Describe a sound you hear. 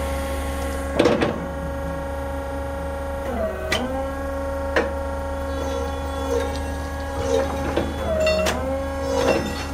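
Forklift parts clank sharply a few times.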